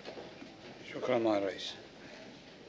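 A man speaks briefly through a microphone in a large room.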